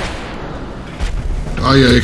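A burst of gunfire rings out.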